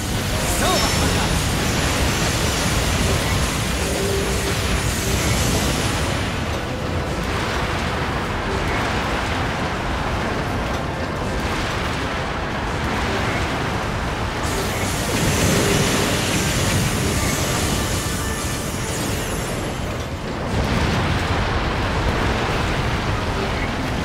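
Explosions boom and crackle in quick succession.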